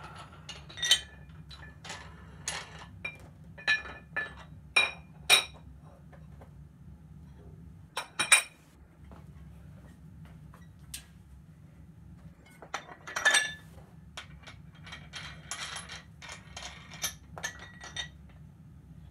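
Metal weight plates clink and clank against each other.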